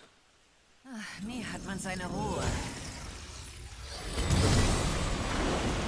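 A magical burst swells and roars.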